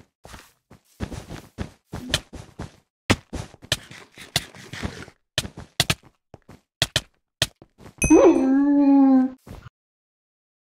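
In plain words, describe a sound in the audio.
Sword hits land with short, sharp thwacks in a video game fight.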